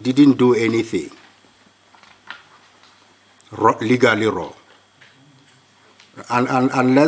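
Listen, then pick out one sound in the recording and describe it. A middle-aged man speaks calmly and deliberately into a microphone, with pauses.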